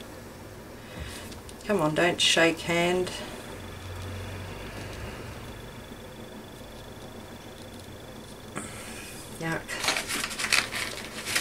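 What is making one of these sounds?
Paper crinkles and rustles as hands fold it.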